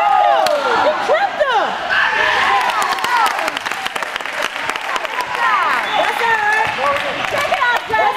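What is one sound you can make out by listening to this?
A basketball bounces on a gym floor.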